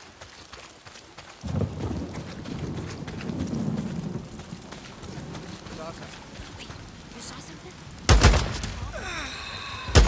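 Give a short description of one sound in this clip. Footsteps crunch quickly on gravel and dirt.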